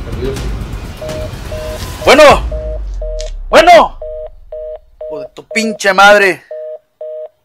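A man speaks into a phone nearby.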